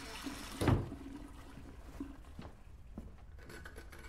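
A wooden door rattles as it slides shut.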